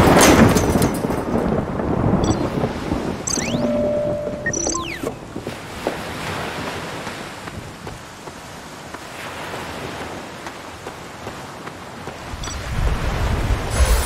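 Footsteps tap on wooden boards.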